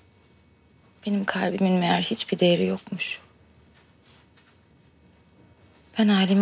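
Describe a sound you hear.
A young woman speaks softly and sadly, close by.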